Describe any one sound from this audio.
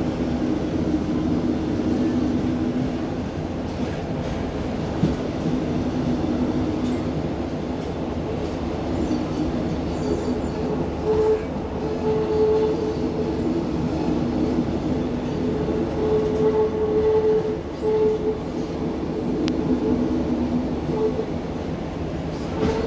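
A vehicle rumbles steadily along.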